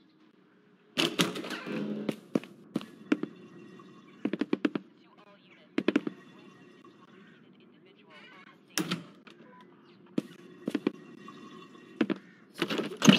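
Footsteps thump on wooden stairs.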